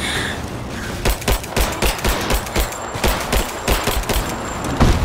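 Pistol shots fire in quick succession.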